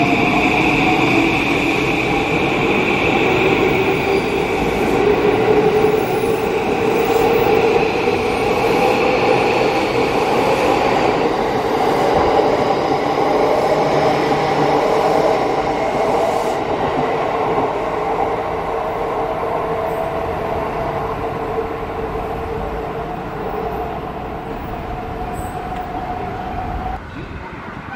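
Train wheels rumble and clatter on the rails, slowly fading into the distance.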